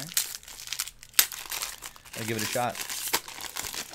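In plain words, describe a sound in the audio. Foil packs crinkle.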